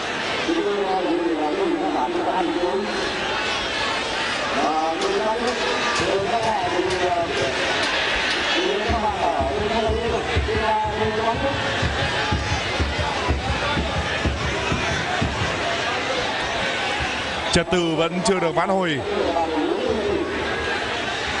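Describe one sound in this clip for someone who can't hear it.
A large crowd murmurs and shouts in an open stadium.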